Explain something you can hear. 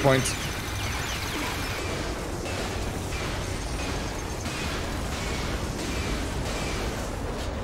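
Rocket launchers fire with sharp booming blasts.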